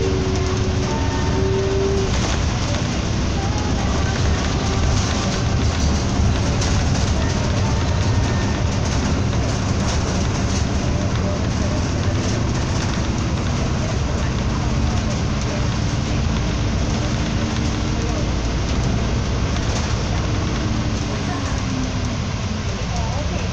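Traffic passes along the road.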